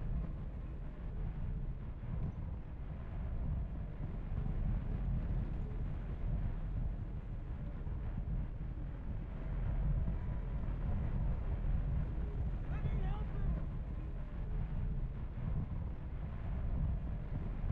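Wind roars past a soldier in freefall.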